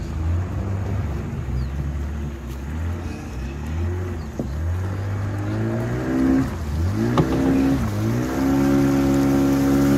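Water splashes against the side of a moving boat.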